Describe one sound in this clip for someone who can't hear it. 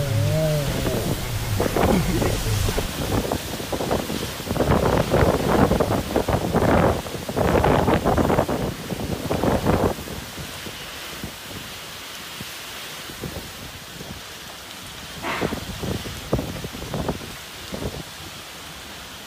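Strong wind roars in heavy gusts outdoors.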